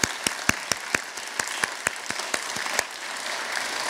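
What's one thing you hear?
A woman claps her hands close by.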